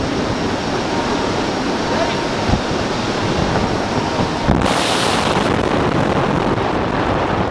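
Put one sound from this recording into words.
Aircraft propeller engines drone nearby.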